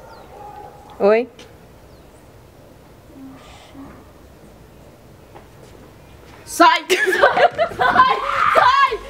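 A young girl talks and shouts excitedly close by.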